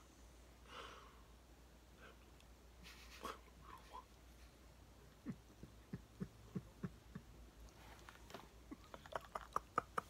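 A man kisses a small dog with wet smacking sounds.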